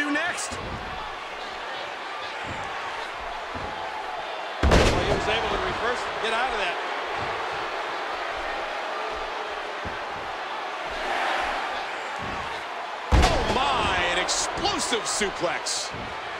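A crowd cheers steadily throughout a large arena.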